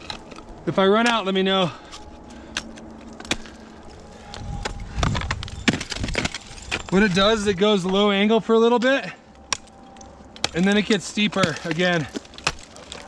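Ice axes strike and chip into hard ice close by.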